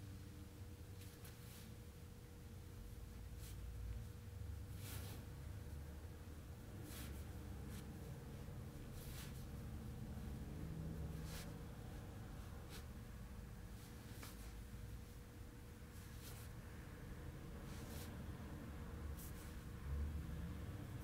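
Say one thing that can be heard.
Hands rub and press on clothing with soft rustling.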